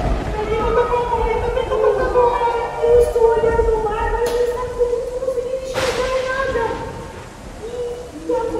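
A woman sings in a high, lively voice close by.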